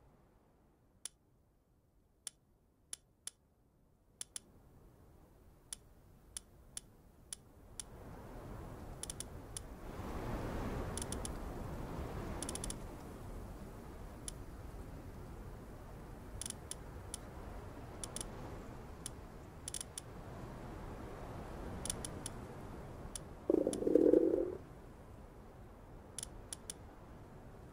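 Menu clicks sound in quick short ticks.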